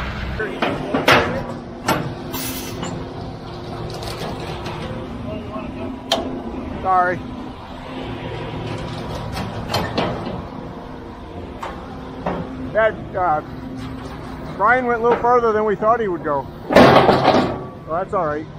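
Metal chute sections clank as they are swung and locked into place.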